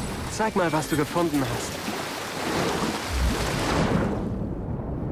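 Water splashes as a figure wades and dives.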